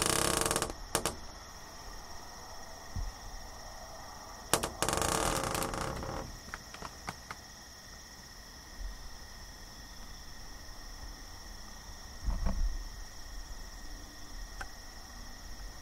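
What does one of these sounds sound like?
A deer walks softly through grass.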